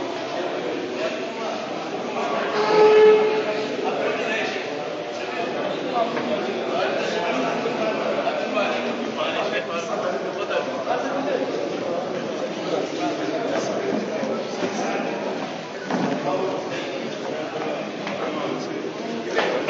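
A crowd of men chatters in a large echoing hall.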